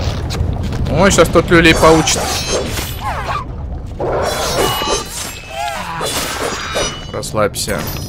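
Blades slash and swish rapidly in a fight.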